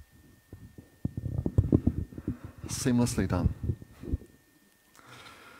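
A middle-aged man speaks into a handheld microphone.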